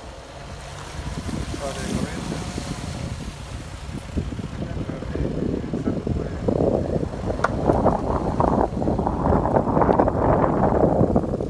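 Wind gusts loudly across the microphone outdoors, growing stronger.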